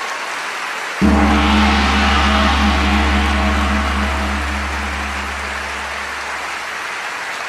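A brass band plays a loud sustained chord in a large hall, then fades out.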